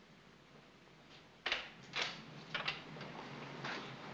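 A door opens and closes.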